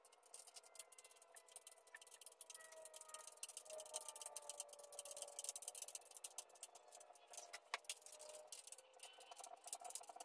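A small metal tool scrapes and clicks against a hydraulic floor jack.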